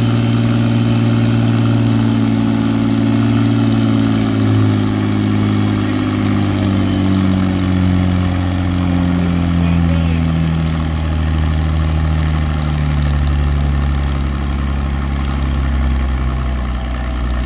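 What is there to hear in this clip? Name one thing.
A tractor engine roars loudly and slowly drops in pitch as it strains.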